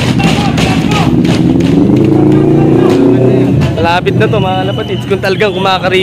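A crowd of people cheers and shouts along a street outdoors.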